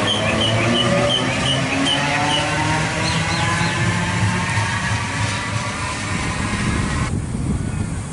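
An electric train whines and rumbles as it pulls away.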